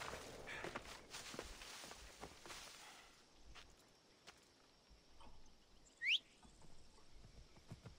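Footsteps crunch over dry grass.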